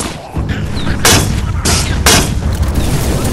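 A heavy explosion booms.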